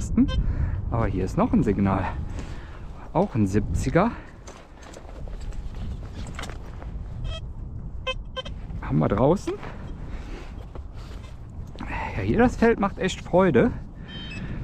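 A metal detector beeps and warbles in short bursts.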